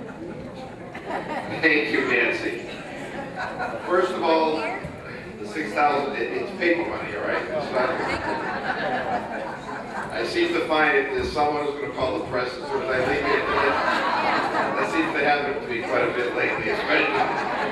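A middle-aged man speaks cheerfully into a microphone over a loudspeaker.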